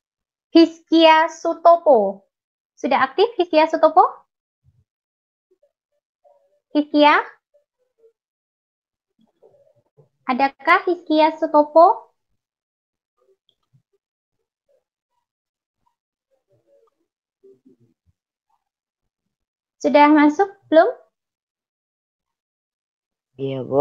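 A young woman speaks calmly through an online call, in short phrases with pauses.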